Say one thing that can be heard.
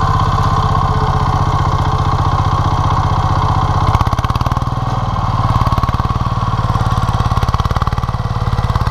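A small tractor engine chugs loudly and steadily close by.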